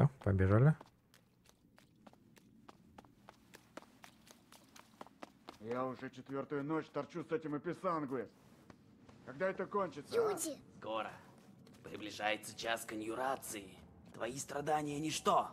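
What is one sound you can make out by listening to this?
Light footsteps run quickly across a stone floor.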